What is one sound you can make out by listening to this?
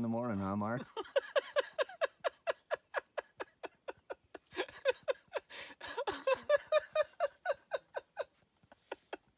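A man laughs heartily close by.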